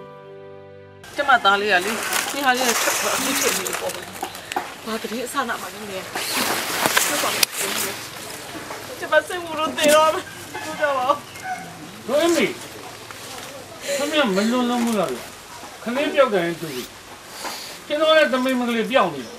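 A middle-aged woman speaks tearfully and sobs nearby.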